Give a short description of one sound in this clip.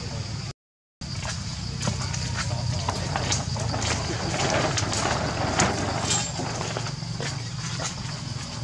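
Monkeys scramble along metal rails with light tapping and rattling.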